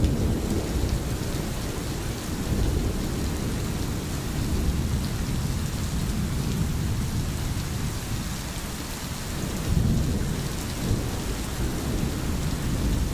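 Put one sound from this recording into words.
A stream gurgles and flows over stones.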